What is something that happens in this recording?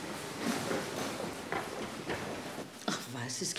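Footsteps run along a hard floor.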